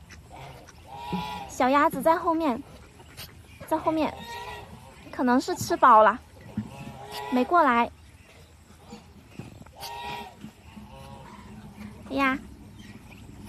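Ducks quack loudly close by.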